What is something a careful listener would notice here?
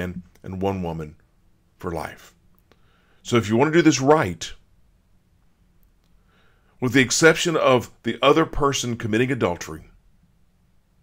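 A middle-aged man speaks calmly and closely into a microphone, in short bursts.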